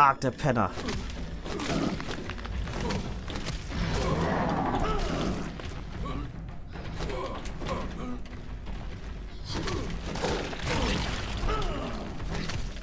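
A monster growls and snarls close by.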